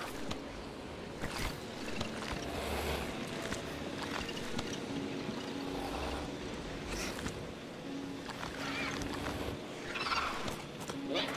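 Small dinosaurs tear and chew at meat.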